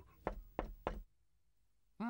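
A small fist knocks three times on a wooden door.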